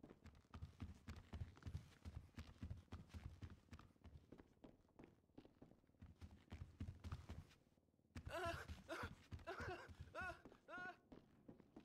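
Footsteps thud heavily across a floor.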